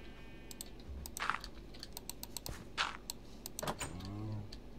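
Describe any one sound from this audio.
Blocks crunch and break with short, sharp clicks.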